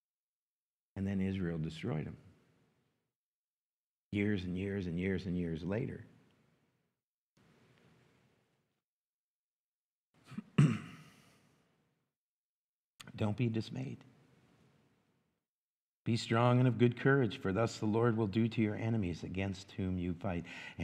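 A middle-aged man speaks calmly into a microphone in a large echoing hall, with pauses between phrases.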